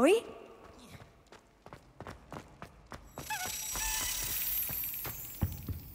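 Footsteps hurry across a stone floor.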